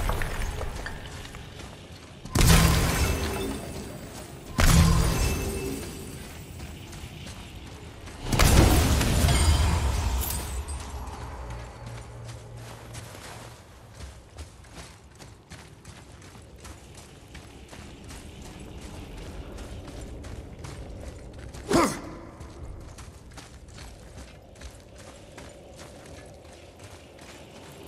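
Heavy footsteps crunch over snow and stone.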